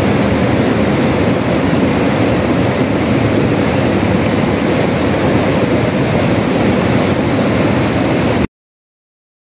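A mountain stream rushes loudly over rocks.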